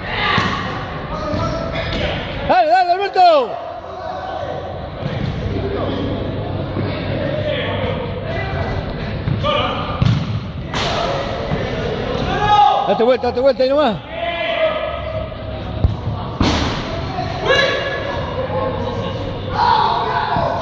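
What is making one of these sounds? Young men shout and call out across a large echoing hall.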